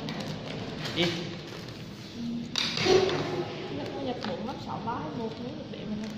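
Plastic wrapping rustles and crinkles in someone's hands.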